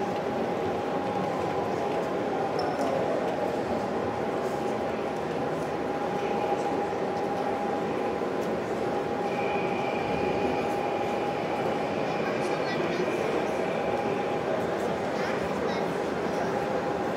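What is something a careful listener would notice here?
A crowd murmurs in a large indoor hall.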